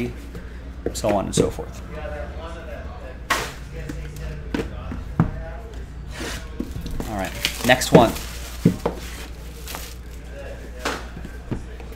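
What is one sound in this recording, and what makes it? A cardboard box is tapped and handled.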